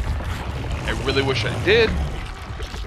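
A large creature roars.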